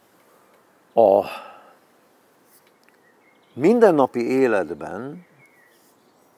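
An elderly man speaks briefly and calmly, close by, with pauses.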